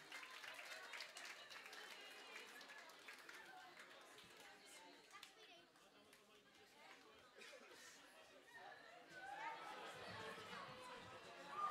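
A crowd of girls and young women chatters nearby.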